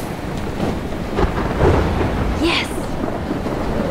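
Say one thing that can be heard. A young woman speaks briefly and excitedly.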